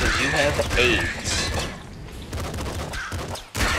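Guns fire in quick bursts with arcade-like blasts.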